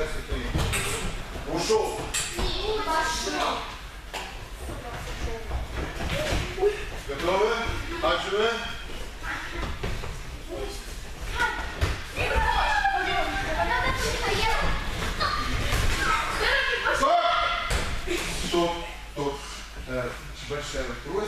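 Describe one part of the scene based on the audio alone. Teenage girls talk and call out to each other in an echoing hall.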